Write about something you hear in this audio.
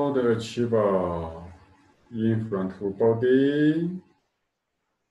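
A man sings a long, sustained tone close by.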